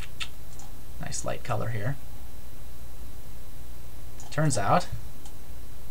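A man speaks calmly and close to a microphone, in short phrases with pauses.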